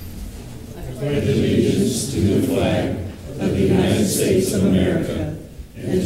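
A group of men and women recite together in unison.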